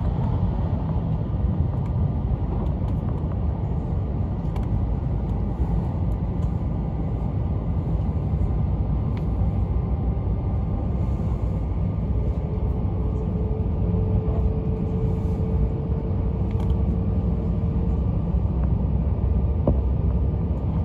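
A train rumbles steadily along the tracks at speed, heard from inside a carriage.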